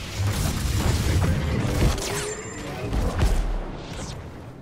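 Heavy blasts and explosions rumble loudly.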